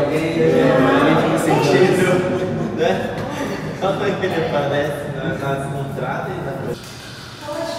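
A man talks with animation nearby.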